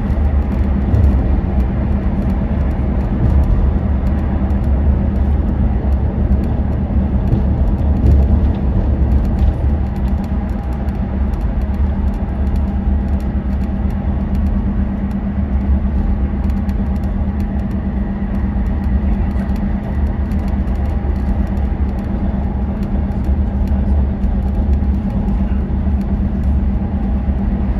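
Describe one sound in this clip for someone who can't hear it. Tyres roar steadily on the road surface.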